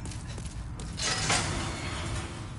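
A heavy cell door grinds shut.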